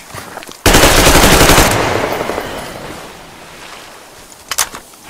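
A loud burst of gunfire roars and echoes away.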